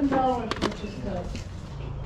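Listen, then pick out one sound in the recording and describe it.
Plastic disc cases clack together as a hand flips through them.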